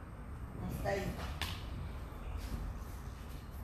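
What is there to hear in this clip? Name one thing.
A woman's shoes thump softly on a mat.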